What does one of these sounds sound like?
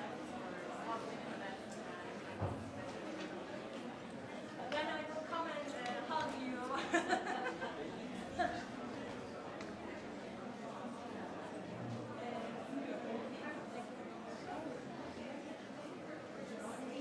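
An audience murmurs and chatters in a large echoing hall.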